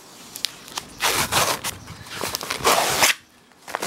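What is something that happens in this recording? Sandpaper rubs back and forth across wood in quick, scratchy strokes.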